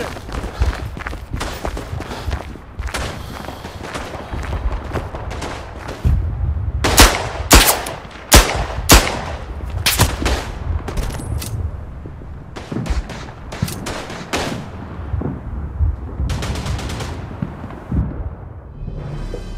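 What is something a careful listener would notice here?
Explosions boom and rumble in the distance.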